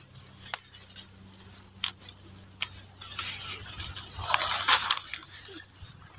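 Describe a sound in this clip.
Leaves and twigs rustle as a hand pulls at a leafy branch.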